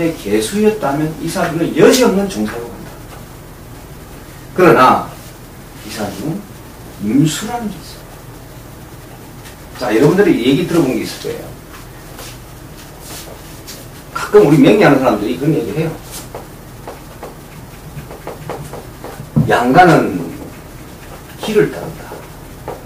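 A middle-aged man speaks calmly and closely in bursts with pauses.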